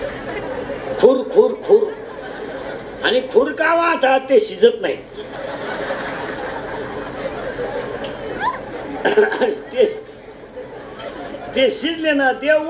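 A middle-aged man speaks with animation into a microphone, amplified through loudspeakers.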